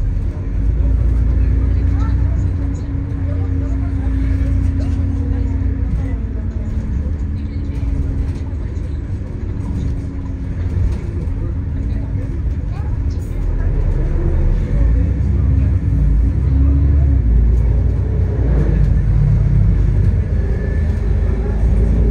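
A bus engine rumbles low and steady as the bus drives along.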